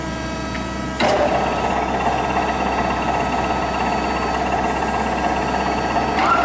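A cutter grinds loudly against metal.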